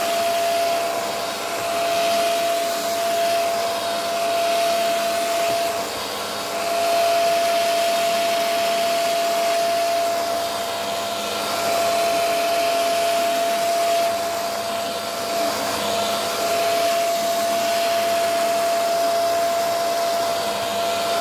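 A vacuum cleaner's brush head brushes back and forth over fabric.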